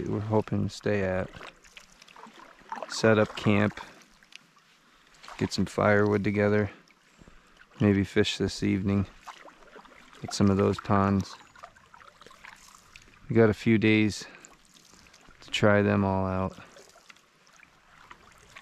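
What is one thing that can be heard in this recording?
A paddle dips and swishes through calm water.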